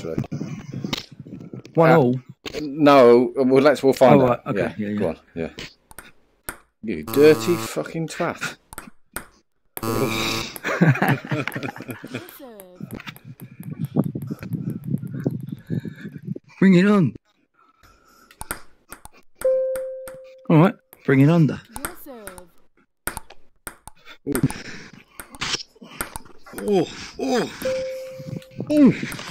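A ping pong ball clicks sharply against paddles and a table.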